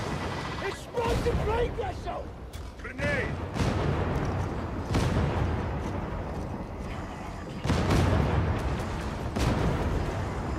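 A heavy gun fires in loud, booming bursts.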